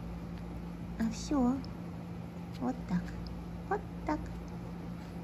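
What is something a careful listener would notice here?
A small dog whimpers and whines in short, high bursts.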